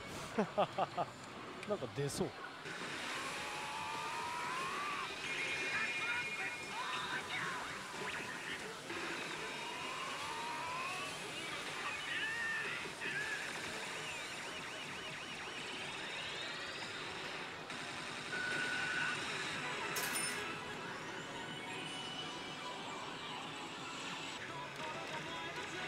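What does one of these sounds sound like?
A slot machine plays loud electronic music and sound effects.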